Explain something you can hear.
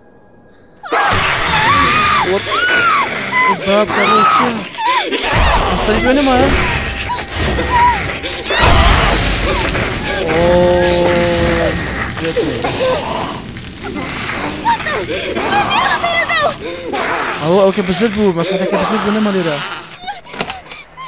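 A man speaks loudly and excitedly into a close microphone.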